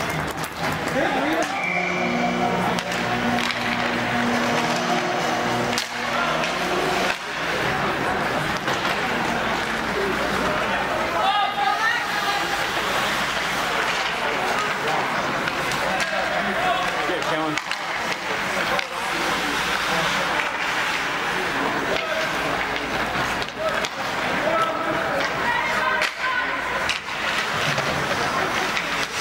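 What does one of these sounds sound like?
Skates scrape and glide across the ice.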